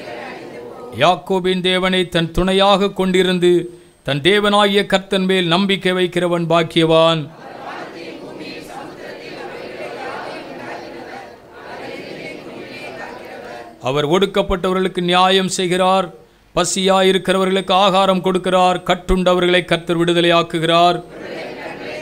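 A man sings slowly and steadily into a microphone, close by.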